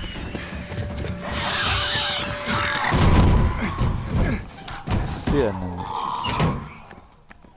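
Heavy bodies thud and scuffle against a door.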